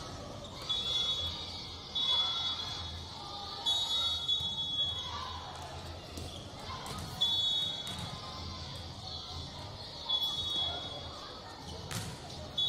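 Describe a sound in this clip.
Young women players call out to each other in a large echoing hall.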